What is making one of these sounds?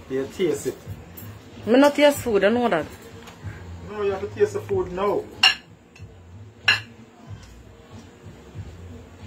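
A metal spoon scrapes and knocks against a pot.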